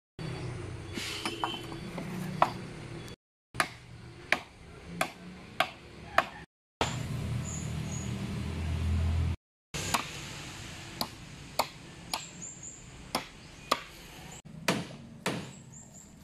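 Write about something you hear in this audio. A blade chops into wood with sharp knocks.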